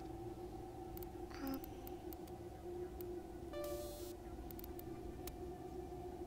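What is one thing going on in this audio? Short electronic menu clicks and beeps sound one after another.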